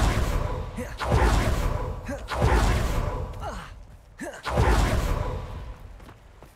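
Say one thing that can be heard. Loud rushing whooshes sweep past in bursts.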